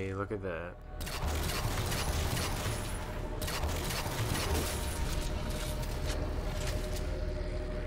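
Rapid gunfire rattles and zaps loudly.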